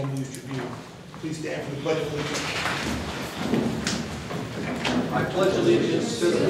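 Chairs scrape and shuffle.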